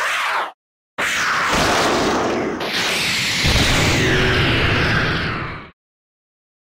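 A fiery explosion booms and rumbles.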